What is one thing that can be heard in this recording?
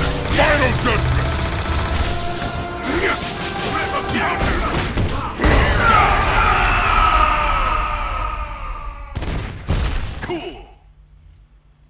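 Energy blasts and heavy punches crash and explode in a fight.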